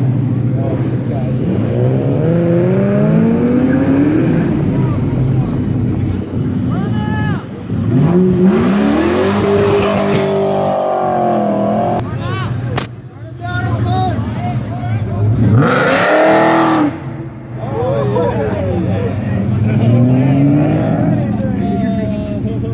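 Car engines rumble and rev loudly nearby.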